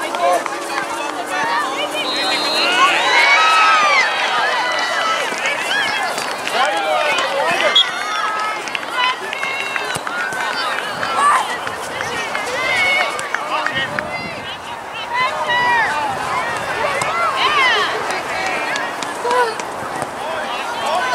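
Young players shout and call to one another across an open field.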